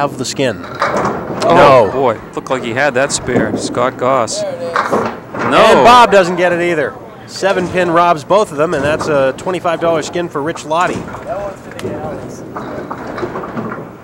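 Bowling pins clatter and crash as a ball strikes them.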